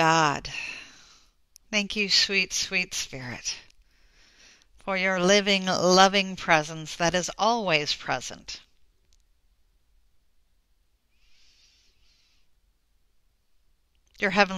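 A woman speaks calmly and softly through a close microphone, pausing between phrases.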